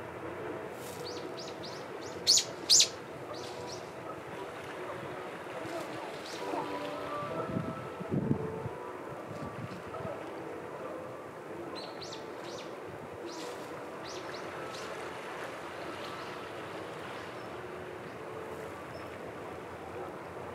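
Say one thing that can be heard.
Small waves lap gently against a rocky shore.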